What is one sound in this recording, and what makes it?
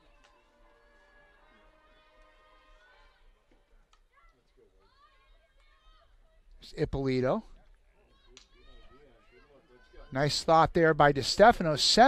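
Field hockey sticks clack against a ball.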